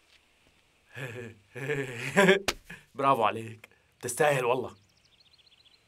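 A young man speaks firmly and loudly nearby.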